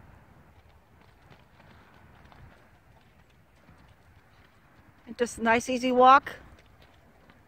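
A horse's hooves thud softly on the ground as it walks.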